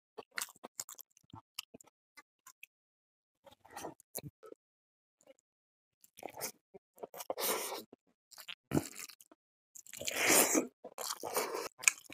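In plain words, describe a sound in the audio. A man chews food loudly and wetly close to a microphone.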